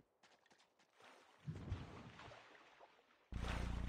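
Water splashes and churns.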